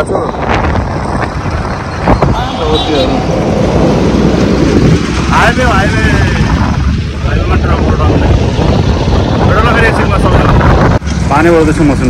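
A motorcycle engine hums along a busy road.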